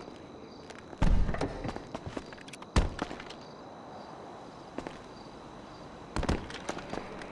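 A rifle fires loud shots that echo briefly.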